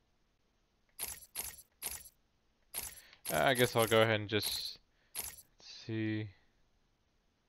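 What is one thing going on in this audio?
Short electronic menu clicks and whooshes sound in quick succession.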